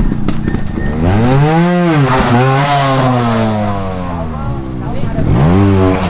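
A motorcycle engine revs sharply up and down.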